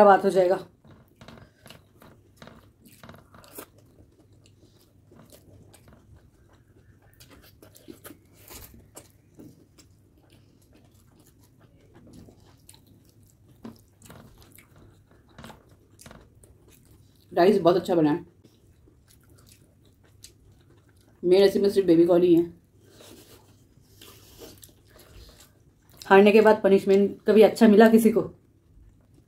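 Two young women chew food noisily close to a microphone.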